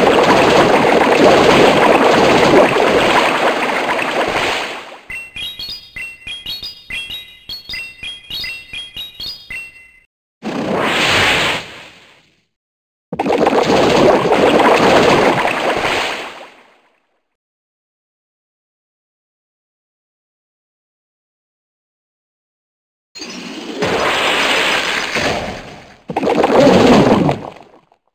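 Game sound effects of attacks crash and whoosh.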